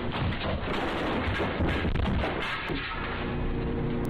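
A wall rack of goods crashes to the floor.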